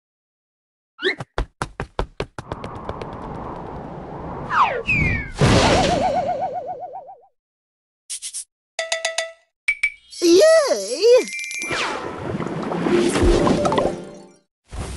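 Cartoon sound effects of a game battle clatter and whoosh.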